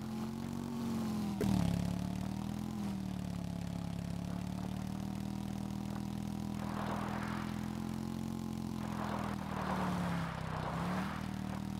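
A dirt bike engine hums steadily, its pitch dipping and rising as it climbs.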